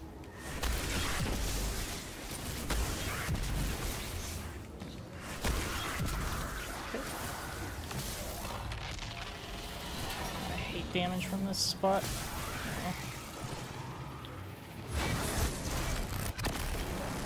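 A man talks close to a microphone with animation.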